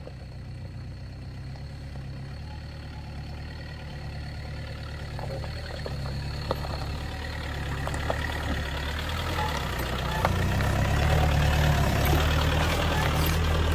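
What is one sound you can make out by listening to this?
A four-wheel-drive pickup engine rumbles as the truck crawls closer.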